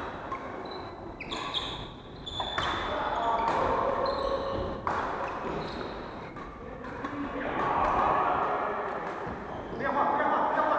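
Shuttlecocks are struck with rackets in a large echoing hall.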